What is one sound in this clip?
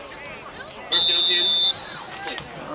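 A referee's whistle blows once sharply.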